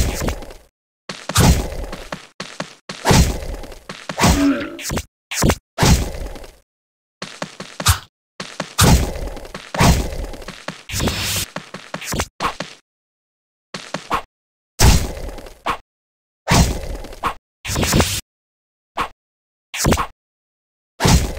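Game attack effects whoosh and thud in quick bursts.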